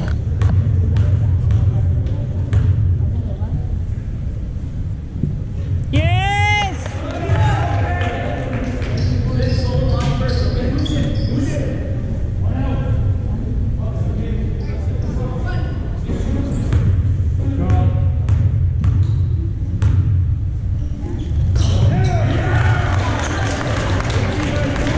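Basketballs bounce with echoing thuds in a large hall.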